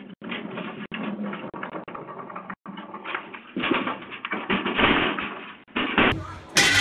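A wheeled bin rolls and rattles over concrete.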